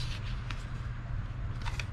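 A paper ticket rustles as it is handled.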